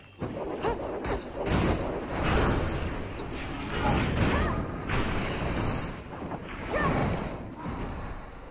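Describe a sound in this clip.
Blades swish and clash in a fast fight.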